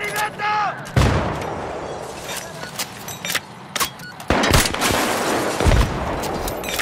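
A grenade explodes with a heavy boom.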